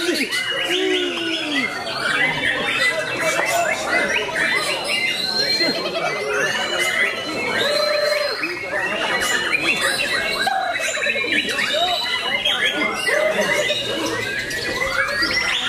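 A white-rumped shama sings a varied, rapid song.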